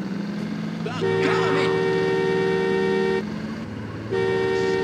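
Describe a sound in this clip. A railway crossing bell rings loudly.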